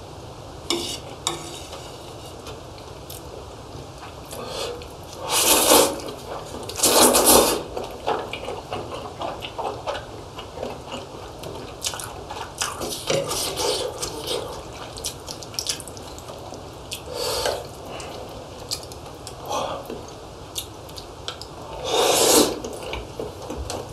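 Chopsticks and a spoon clink against plates.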